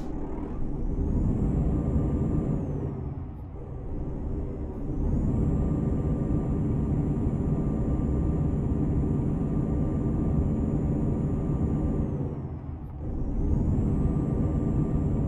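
Truck tyres crunch over a gravel road.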